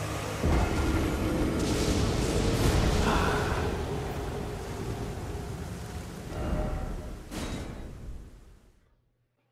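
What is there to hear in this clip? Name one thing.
A large creature stomps heavily.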